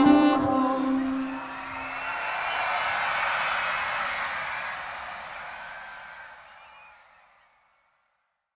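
A large crowd cheers and shouts outdoors, then fades away.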